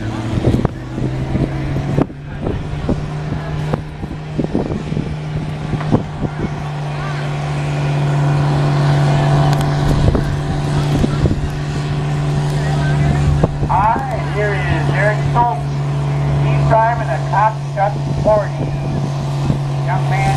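A tractor engine roars steadily, growing louder as the tractor draws closer.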